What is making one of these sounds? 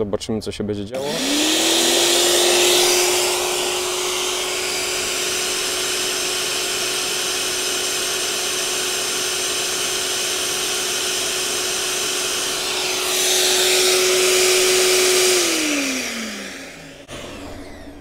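An electric garden shredder starts up, hums loudly and steadily, then winds down to a stop.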